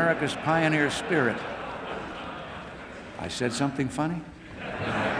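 An elderly man speaks with good humour into a microphone in a large echoing hall.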